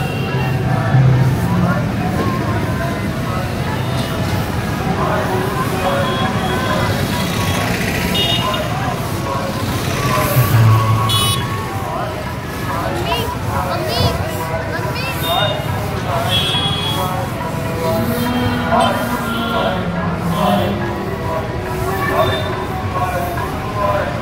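A busy street crowd murmurs outdoors.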